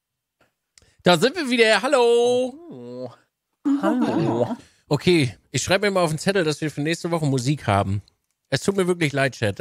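A man talks with animation through an online call.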